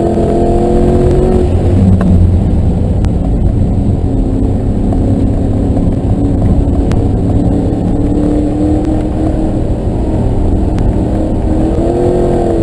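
Wind rushes past the moving car.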